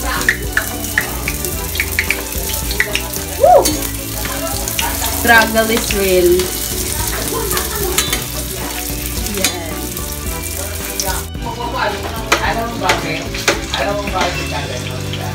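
Food sizzles in hot oil in a frying pan.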